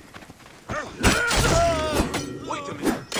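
A blade slashes and strikes a body.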